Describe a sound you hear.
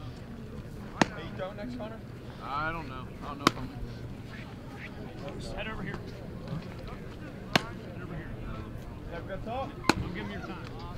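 A baseball smacks sharply into a leather glove.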